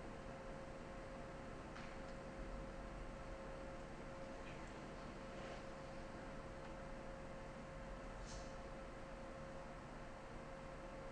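A piano plays softly in a large hall.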